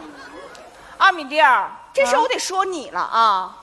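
A woman speaks loudly and with animation through a microphone.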